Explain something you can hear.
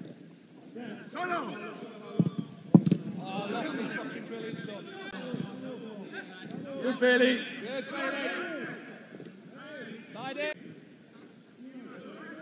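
Young men shout to each other across an open football pitch.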